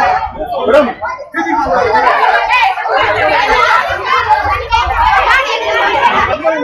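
A crowd of young women and men shout and chant loudly outdoors.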